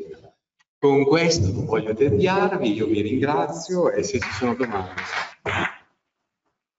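A man speaks with animation into a microphone close by.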